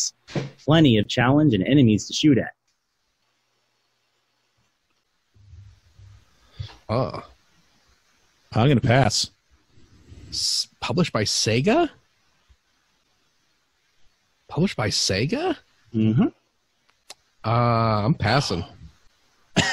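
Young men talk with animation over an online call.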